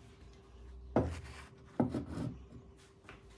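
A heavy metal vise is set down onto a wooden bench with a thud.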